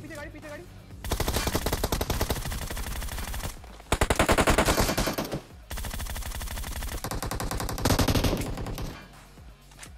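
Gunfire rattles in rapid bursts close by.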